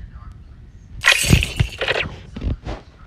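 A cartoon reward chime rings as a check mark lands.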